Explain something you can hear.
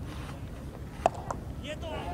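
A cricket bat knocks a ball with a sharp crack.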